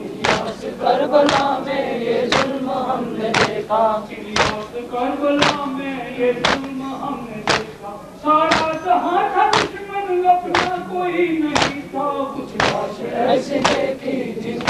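A group of men chant loudly in unison.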